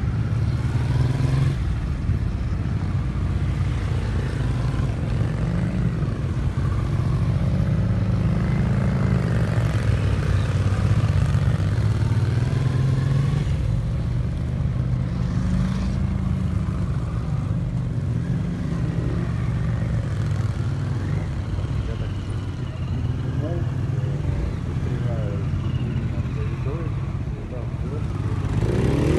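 A motorcycle engine revs up and down as the bike weaves at low speed.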